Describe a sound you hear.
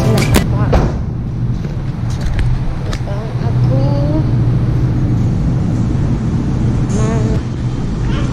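A young boy talks briefly and casually close by.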